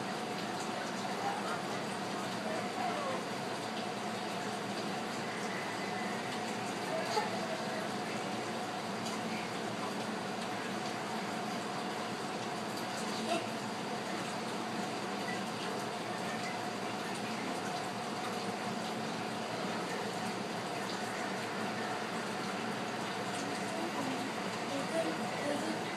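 A young boy talks quietly nearby.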